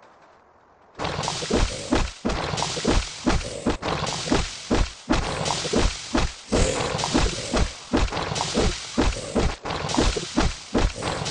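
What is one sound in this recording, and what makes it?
Blows thud and strike rapidly in a fight.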